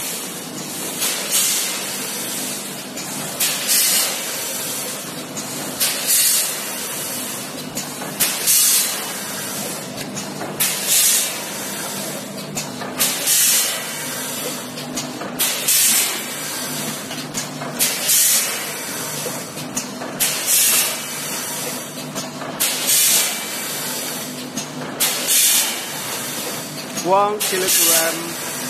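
Compressed air hisses in regular bursts from a packing machine.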